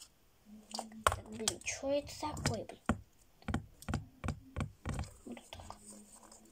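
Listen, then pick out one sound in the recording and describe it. Plastic toy capsules click and rattle in a girl's hands.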